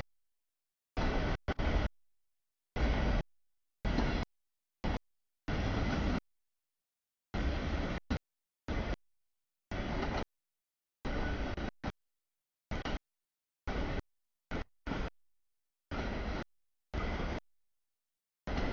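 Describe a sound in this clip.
A freight train rumbles and clatters past close by, with the sound cutting in and out.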